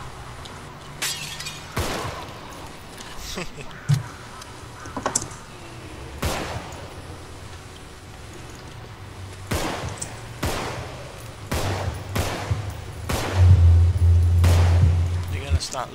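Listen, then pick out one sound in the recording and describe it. Pistol shots ring out sharply, one at a time, echoing in a large hall.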